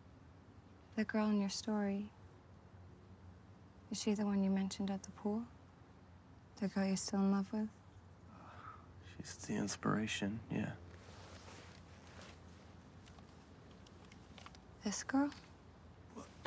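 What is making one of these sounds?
A young woman speaks quietly and gently, close by.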